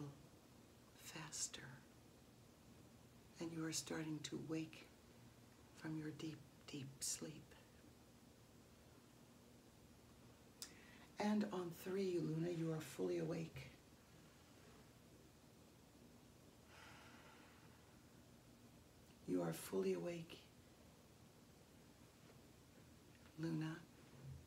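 A woman speaks calmly and clearly, close by, in short phrases with pauses.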